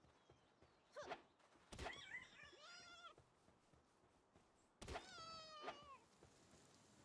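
Small creatures let out short, high chirping calls.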